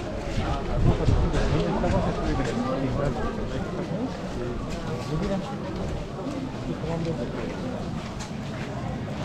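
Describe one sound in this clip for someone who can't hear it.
A large crowd of men and women chants together outdoors.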